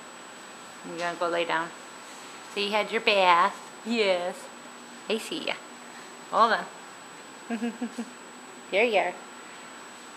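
A dog whines and yelps playfully, close by.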